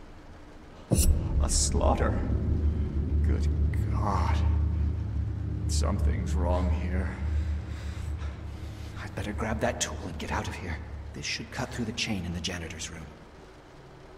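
A man speaks through a microphone in a low, measured voice.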